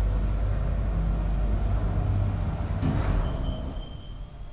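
An elevator car hums and rumbles as it travels.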